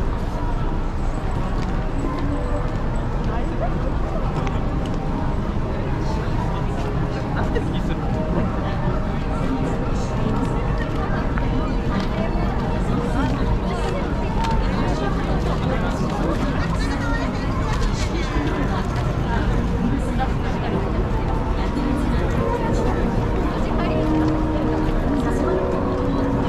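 Footsteps patter on paving nearby.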